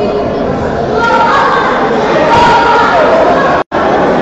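Children shout and cheer loudly.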